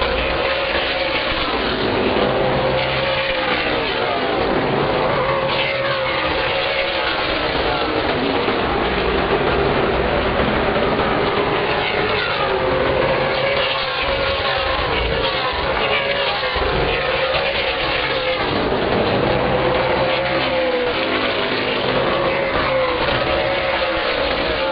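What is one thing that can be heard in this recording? Race car engines roar loudly, rising and falling in pitch as cars speed past.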